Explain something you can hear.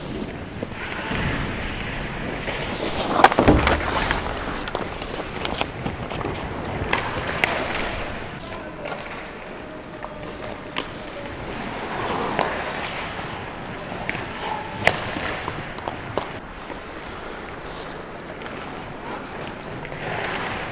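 Skate blades scrape and hiss across the ice in a large echoing arena.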